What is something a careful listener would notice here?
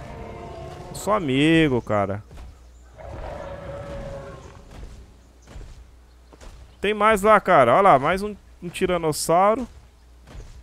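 A large creature roars loudly with deep, wavering growls.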